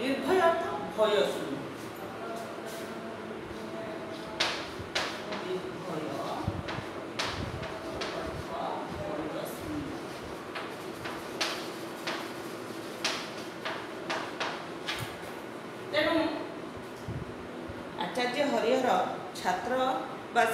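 A woman speaks clearly and steadily, close by.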